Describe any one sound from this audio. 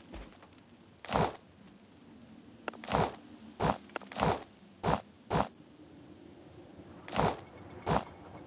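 Short soft whooshing pickup sounds come one after another.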